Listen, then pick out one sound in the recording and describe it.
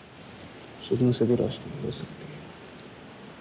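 A man speaks softly nearby.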